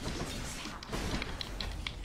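A burst of bright magic crackles and rings out.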